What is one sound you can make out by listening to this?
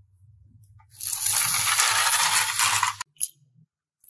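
A toy truck rolls along a wooden track.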